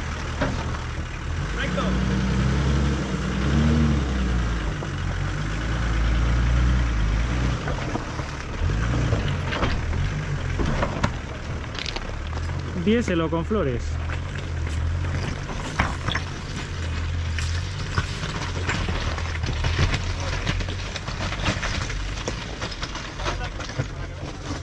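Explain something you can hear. Rocks crunch and knock under tyres.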